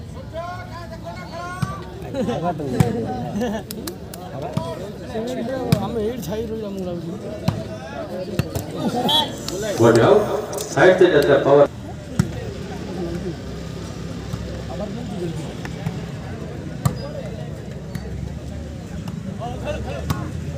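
A crowd of spectators chatters and cheers loudly outdoors.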